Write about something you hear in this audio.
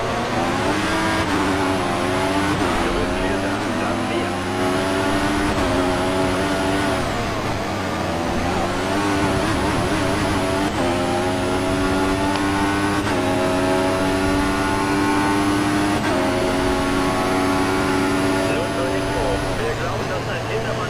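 A racing car engine screams at high revs, rising in pitch and dropping sharply with each gear change.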